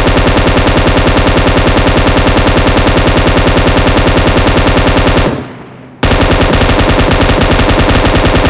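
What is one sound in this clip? An automatic rifle fires rapidly and steadily, with one short pause.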